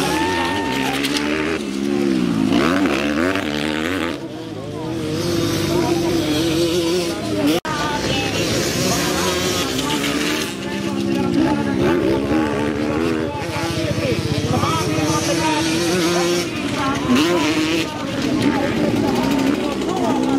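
Dirt bike engines rev and whine loudly as the bikes race past.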